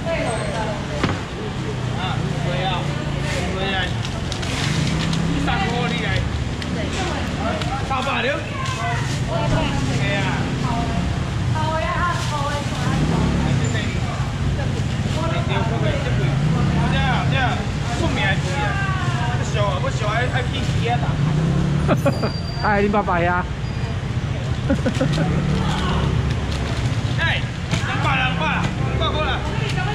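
Several people chatter nearby.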